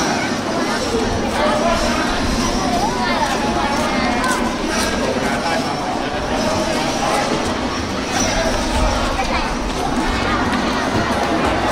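A large crowd of children chatters loudly outdoors.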